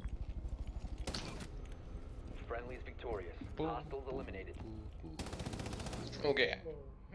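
A rifle fires in loud bursts.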